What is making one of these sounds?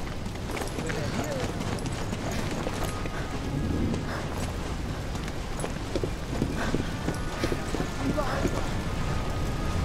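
Footsteps scuff on stone and wooden steps.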